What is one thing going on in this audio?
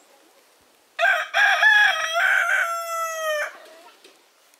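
A man calls out in a drawn-out voice nearby.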